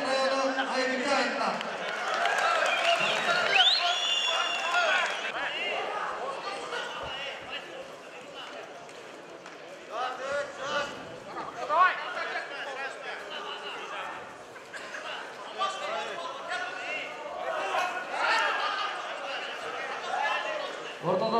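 A large crowd murmurs and shouts in an echoing hall.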